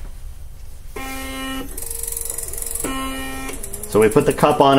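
An electronic device beeps several times.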